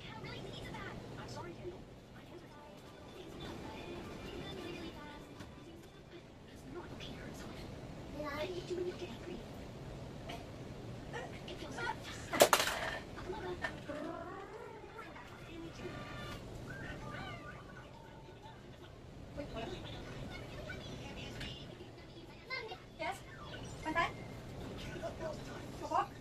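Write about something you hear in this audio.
A small child babbles and chatters.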